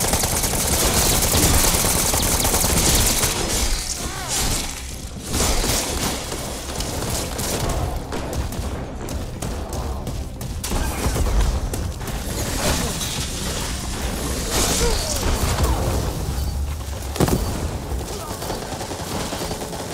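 Gory splatters and thuds of blows land on zombies.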